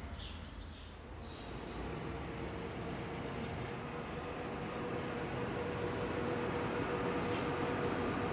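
A bus engine hums and grows louder as the bus drives closer.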